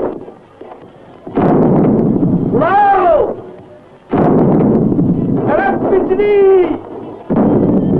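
A cannon fires with a loud, rumbling boom.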